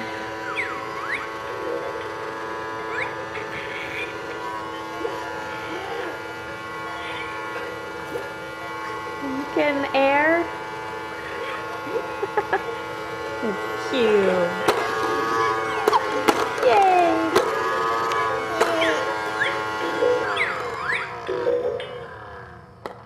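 A toy plays a cheerful electronic tune.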